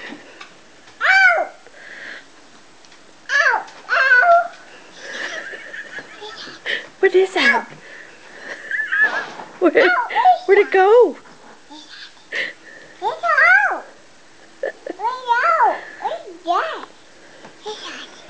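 A toddler babbles and squeals in high, sing-song bursts close by.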